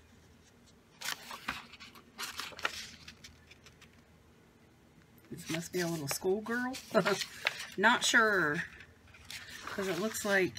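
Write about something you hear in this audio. Paper pages rustle and flap as they are turned.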